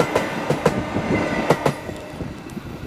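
Train wheels clatter loudly over rail joints close by.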